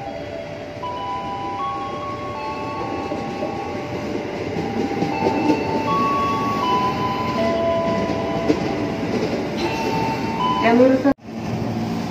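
An electric train rolls into a station, rumbling louder as it nears.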